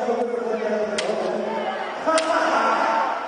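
Bamboo swords clack together.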